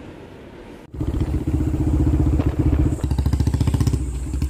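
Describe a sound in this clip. A motor scooter engine rumbles steadily while riding.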